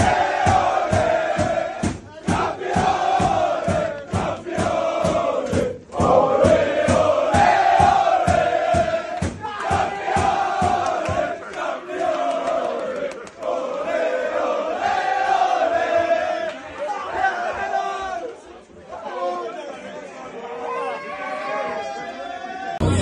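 A group of young men chant loudly together in a room with some echo.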